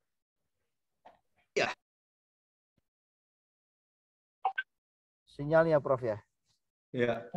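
A man speaks calmly in short bursts over an online call.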